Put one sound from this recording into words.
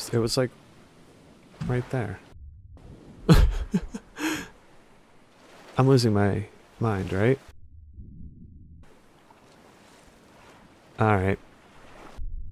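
Water sloshes softly as someone wades through a flooded passage.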